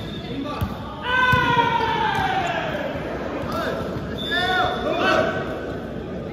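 Young men shout and cheer loudly.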